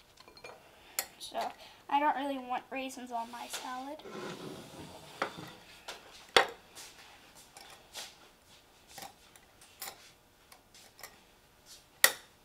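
A spoon clinks against a glass jar.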